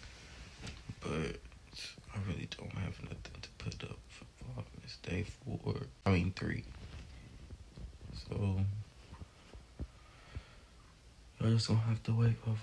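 A man speaks softly, very close by.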